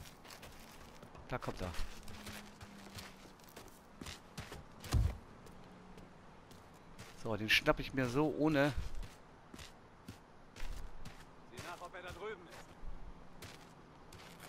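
Footsteps creep through grass.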